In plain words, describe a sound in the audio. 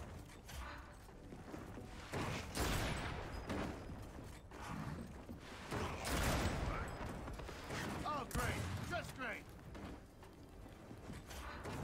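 Heavy armoured footsteps thud as a figure runs.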